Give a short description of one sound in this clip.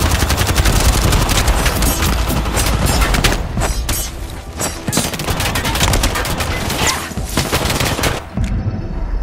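Rapid gunfire and hard impacts crackle loudly in a video game fight.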